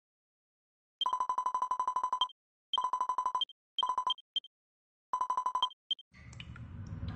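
A game's dialogue text chirps with rapid high beeps in short bursts.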